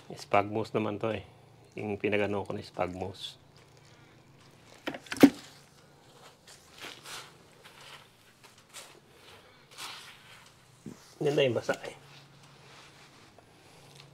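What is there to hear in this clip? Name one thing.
Soil pours from a plastic bucket onto a heap.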